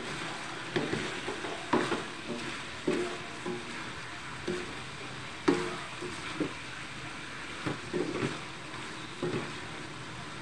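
A wooden spatula scrapes and knocks against a metal wok while stirring.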